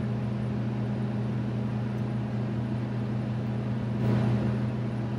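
A large machine's engine hums steadily.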